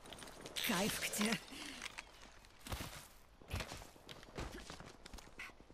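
Footsteps patter quickly over hard ground.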